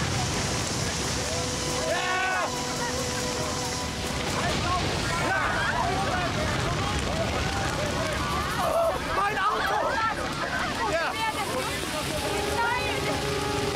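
Water sprays hard from a fire hose.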